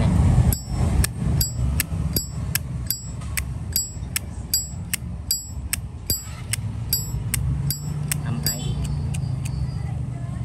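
A metal lighter lid clicks open and snaps shut again and again, quickly and evenly.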